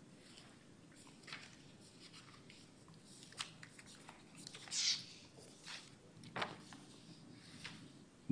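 Sheets of paper rustle and crinkle close to a microphone.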